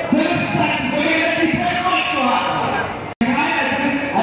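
A large crowd chants together outdoors.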